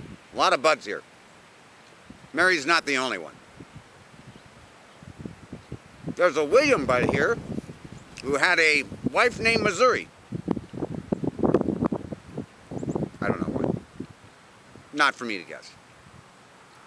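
A man talks calmly and with animation close by, outdoors.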